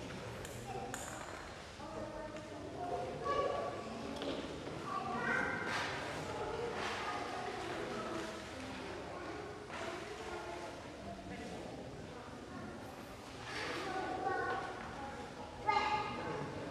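A man speaks calmly and slowly, distant, in a large echoing hall.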